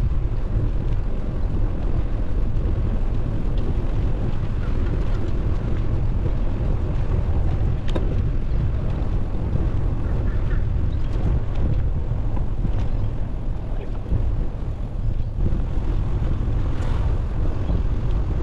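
Bicycle tyres hum along a smooth path.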